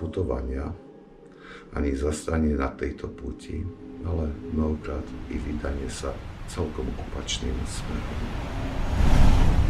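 An elderly man speaks calmly and closely.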